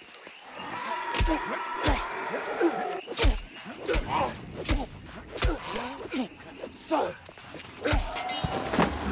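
Sword blows strike hard in quick succession.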